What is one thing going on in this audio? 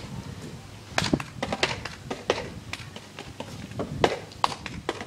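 Shoes tap sharply on a wooden floor.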